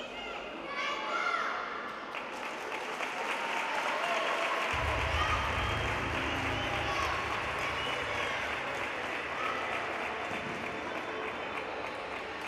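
A crowd of children chatters in a large echoing hall.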